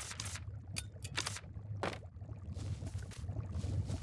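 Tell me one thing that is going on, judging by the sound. A soft game interface whoosh sounds as a menu closes.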